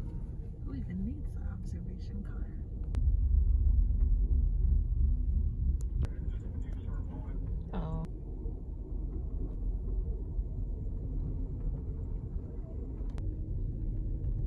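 A passenger train rumbles and rattles along the tracks, heard from inside a carriage.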